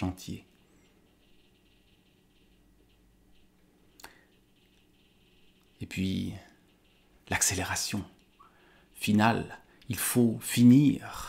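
A man speaks calmly and closely, in short bursts with pauses.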